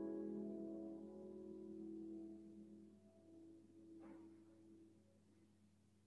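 A piano's final chord rings out and slowly fades in an echoing hall.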